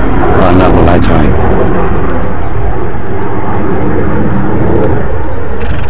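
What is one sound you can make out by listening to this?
Strong wind rumbles and buffets loudly outdoors.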